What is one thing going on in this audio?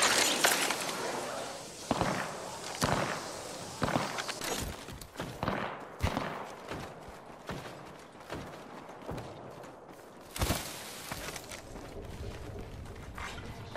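Quick footsteps run over grass and gravel.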